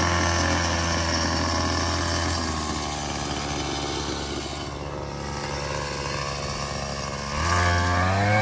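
A string trimmer motor hums steadily.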